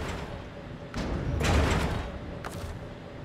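A heavy load of cargo thuds and rattles onto a truck.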